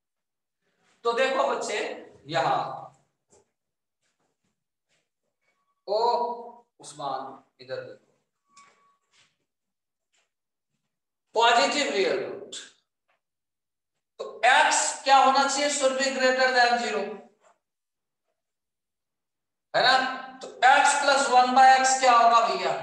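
A man speaks nearby in short bursts with pauses, as if explaining a lesson.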